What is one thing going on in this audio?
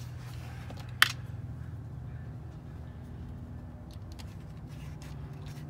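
A screwdriver clicks and scrapes against hard plastic up close.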